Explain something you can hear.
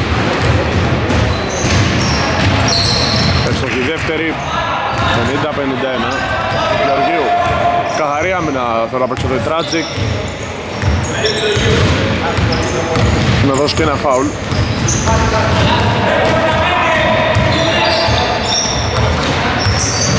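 Men shout to each other across the echoing gym.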